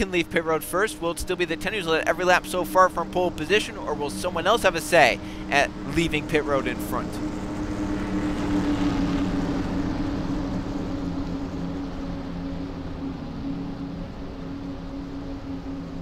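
Race car engines drone steadily at high speed.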